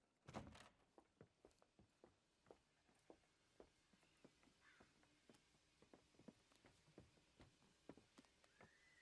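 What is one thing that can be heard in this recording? Footsteps tread at a steady walking pace.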